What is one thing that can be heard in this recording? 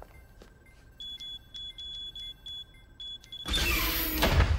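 A keypad beeps in quick short tones.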